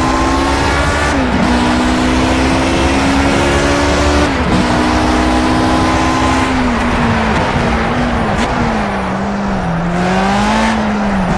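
A racing car engine roars loudly, rising in pitch and dropping sharply at each gear shift.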